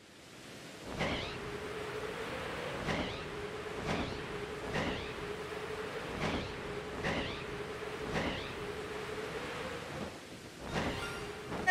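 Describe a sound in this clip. Large wings flap in a steady rhythm.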